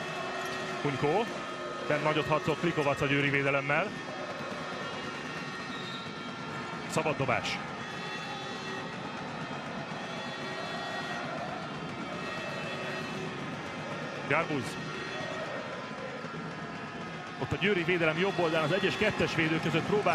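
A large crowd cheers and chants steadily in an echoing arena.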